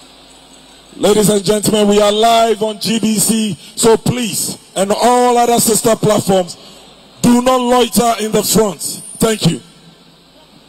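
A man shouts with animation through a microphone.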